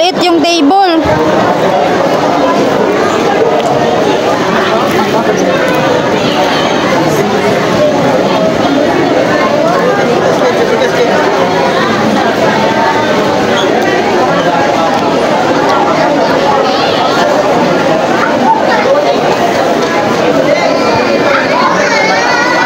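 A crowd of adults and children chatters loudly all around.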